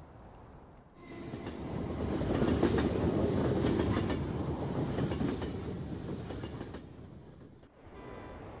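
A crowd of people murmurs inside a train car.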